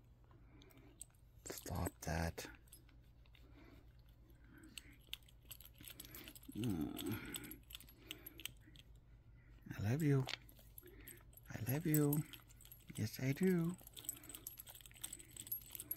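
A hand rubs a dog's short fur.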